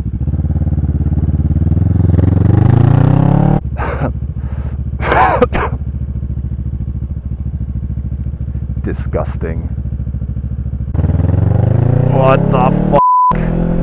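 A motorcycle engine hums and revs up and down close by.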